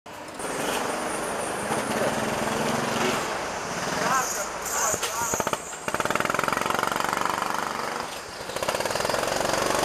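A go-kart engine buzzes and rattles loudly up close.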